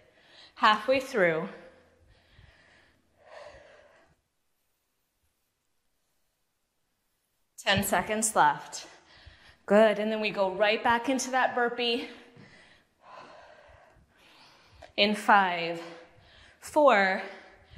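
A woman talks calmly and clearly into a microphone, close by.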